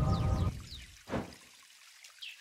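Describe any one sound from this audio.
A short game sound effect swooshes as a card is played.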